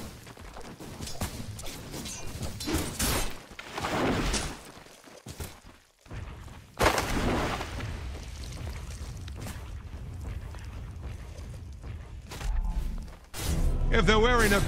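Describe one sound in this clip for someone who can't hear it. Game spells whoosh and crackle in bursts during a fight.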